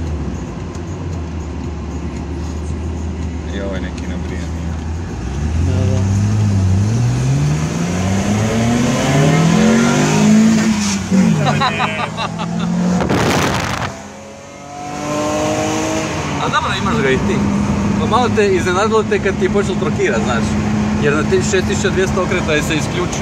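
A car engine hums from inside the car and revs up through the gears.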